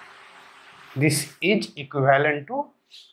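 A young man speaks briefly nearby.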